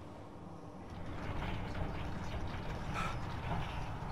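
Steam hisses loudly from a machine.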